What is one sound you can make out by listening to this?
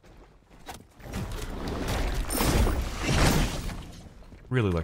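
A magical blast whooshes and crackles.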